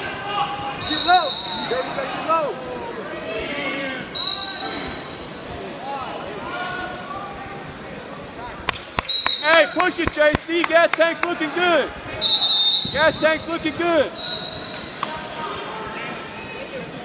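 Spectators shout encouragement in a large echoing gym.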